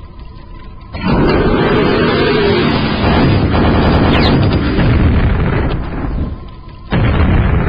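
A monster roars and snarls.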